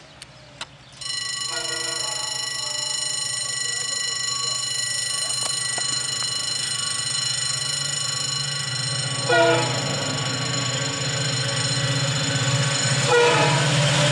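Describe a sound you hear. A train horn blares long and loud.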